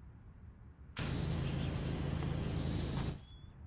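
A pressure washer sprays water with a loud, steady hiss.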